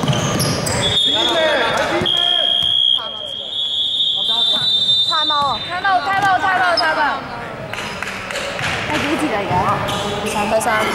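Young men call out and talk nearby.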